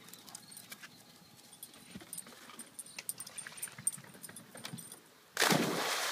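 A dog's paws thud quickly across grass and wooden boards.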